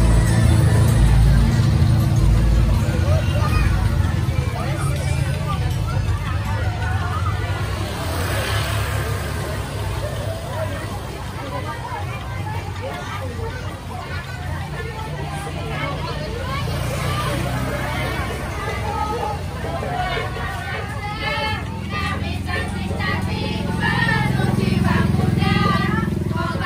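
A crowd of women and children chatters all around outdoors.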